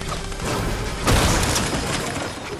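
Metal shelving is smashed apart with a loud crash.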